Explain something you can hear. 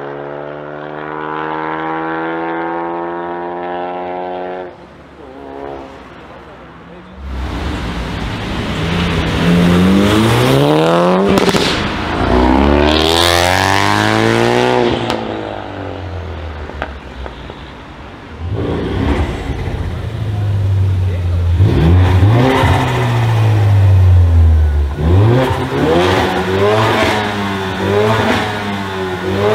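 A car engine revs loudly and roars past.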